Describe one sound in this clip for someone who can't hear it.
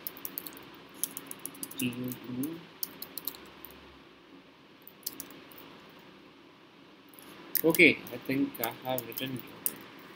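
Keys on a computer keyboard click in quick bursts of typing.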